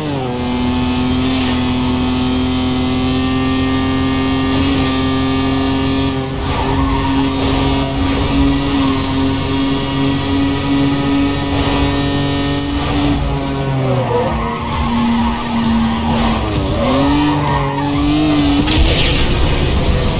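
A race car engine roars at high speed, its pitch shifting with gear changes.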